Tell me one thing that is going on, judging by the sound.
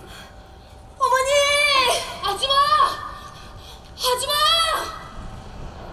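A young man calls out loudly through a microphone in a large hall.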